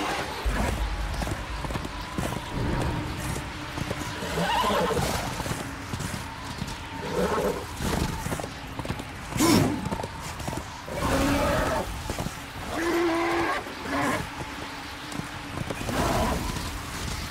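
A horse's hooves pound steadily at a gallop.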